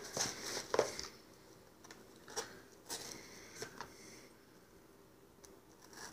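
A knife cuts through packing tape on a cardboard box.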